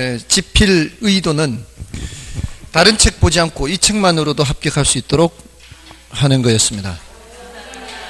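A man speaks with animation into a microphone, heard through a loudspeaker in an echoing room.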